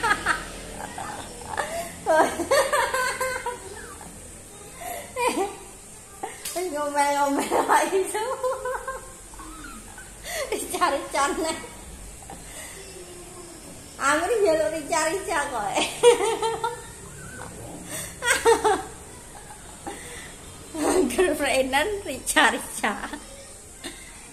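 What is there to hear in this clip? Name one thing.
A young woman laughs close to the microphone.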